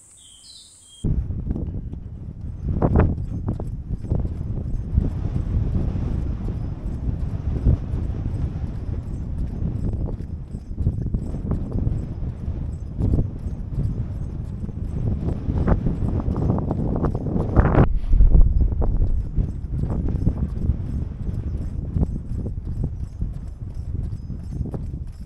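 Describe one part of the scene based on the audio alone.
Wind roars and buffets loudly against a fast-moving microphone outdoors.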